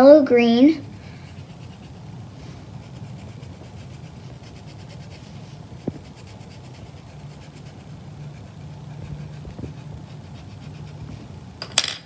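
A colored pencil scratches softly on paper.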